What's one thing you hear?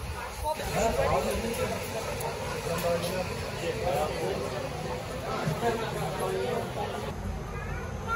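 A crowd chatters and murmurs around.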